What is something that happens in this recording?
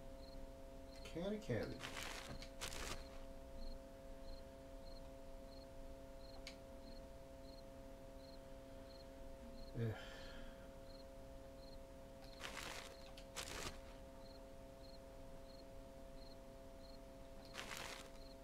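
A man talks quietly into a close microphone.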